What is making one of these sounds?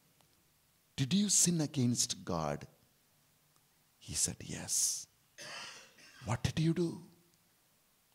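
A middle-aged man speaks emphatically into a microphone in bursts, heard through a loudspeaker.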